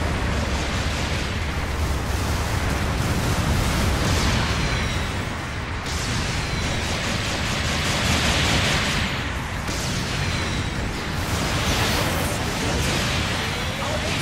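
Explosions boom in a video game battle.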